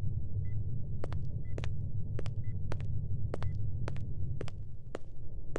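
A man's footsteps tap steadily on a hard floor.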